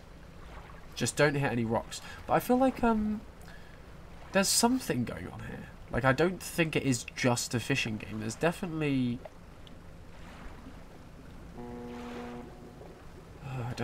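A small boat's motor hums across water.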